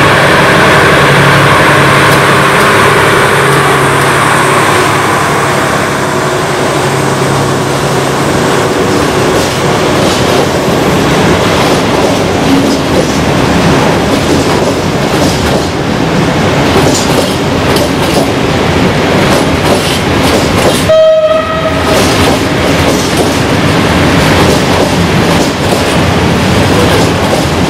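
Freight wagons rumble and clatter steadily past on the rails.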